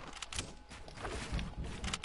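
A pickaxe strikes wood repeatedly.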